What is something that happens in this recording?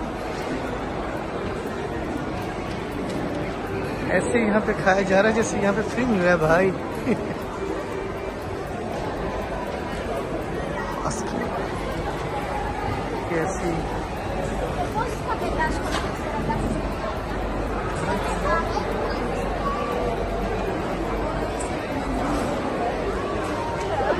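A large crowd chatters all around in a big echoing hall.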